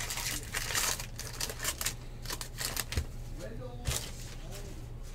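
Plastic wrapping crinkles and rustles close by.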